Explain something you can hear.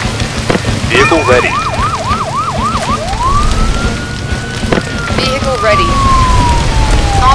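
A siren wails in quick rising and falling cycles, then in a long drawn-out tone.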